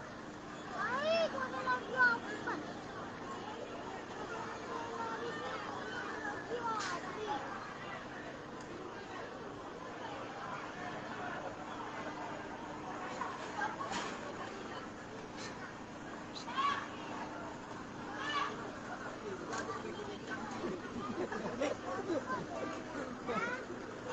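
A large crowd of men and women shouts and chatters outdoors, heard from a distance.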